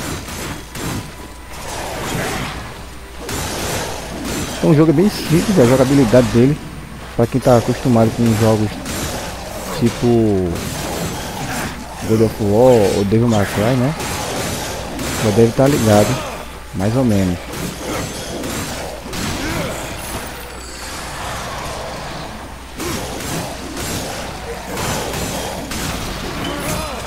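Blades clash and strike in quick, repeated hits.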